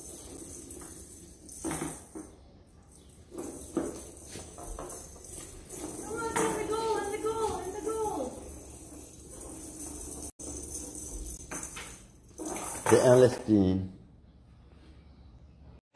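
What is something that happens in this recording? A toy broom brushes and taps across a wooden floor.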